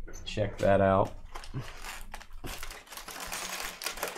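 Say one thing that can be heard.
Cardboard packaging rustles and scrapes as a box is opened.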